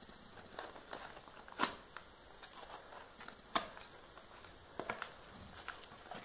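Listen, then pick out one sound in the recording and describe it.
A blade slices through a padded paper envelope.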